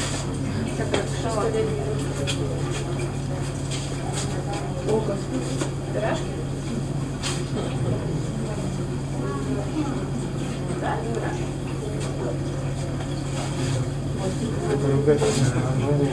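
Air bubbles gurgle softly in a water tank.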